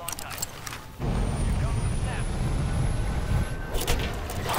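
Jet aircraft engines roar loudly.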